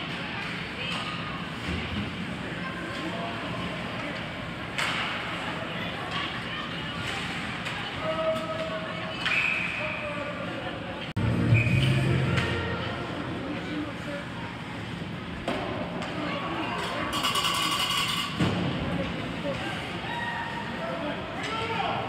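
Ice hockey skates scrape across the ice in an echoing arena.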